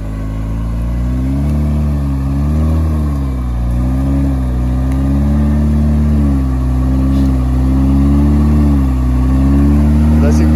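An engine revs up and down loudly as an off-road vehicle strains in mud.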